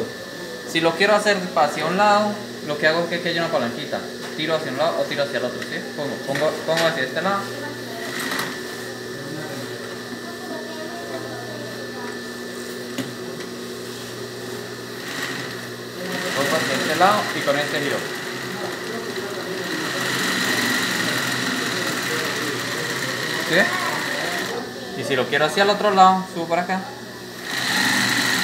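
A sewing machine runs with a steady whirring hum.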